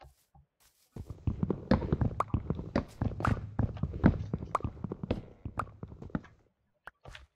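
Rapid wooden knocks of an axe chopping wood.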